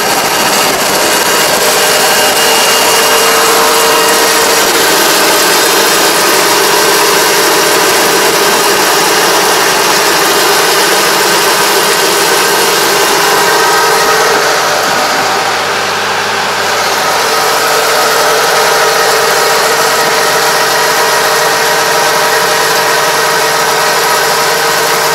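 Soil scrapes and churns under a rotating plough.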